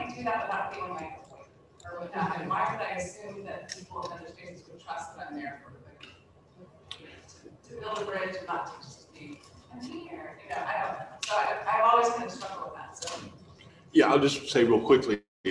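An older woman speaks calmly into a microphone.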